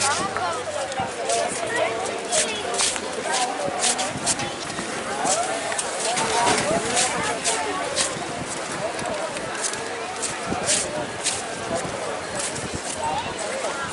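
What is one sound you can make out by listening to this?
Footsteps tap on paving.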